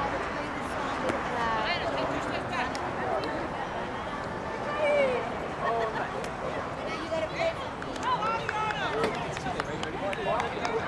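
Young players shout and call out to each other across an open field, heard from a distance.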